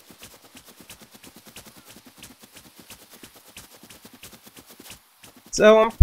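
Quick light footsteps patter steadily across grass.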